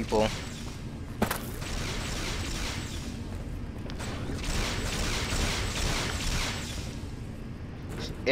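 Footsteps clang on a metal grate floor.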